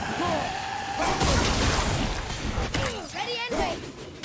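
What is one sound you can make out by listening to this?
Fire bursts with a loud roar.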